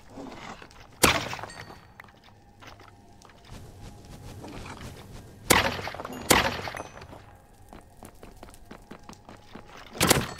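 A sword strikes hard blows.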